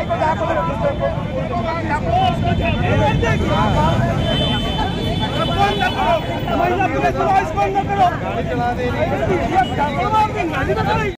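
A crowd of men talk and argue loudly all at once, close by outdoors.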